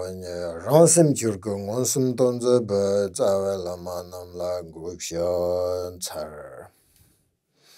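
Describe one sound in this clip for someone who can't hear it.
A man chants in a deep, steady voice close to a microphone.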